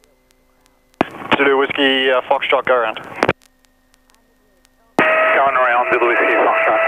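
A man speaks calmly over a crackly headset radio.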